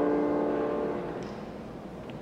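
A man sings a long, steady note through a microphone in a large echoing hall.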